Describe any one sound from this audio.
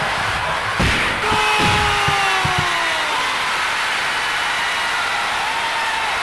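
A crowd cheers loudly after a goal.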